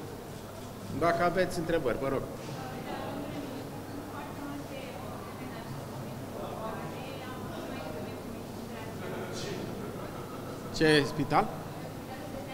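A middle-aged man speaks into microphones in short bursts.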